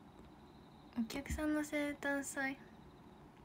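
A young woman speaks brightly and close to a phone microphone.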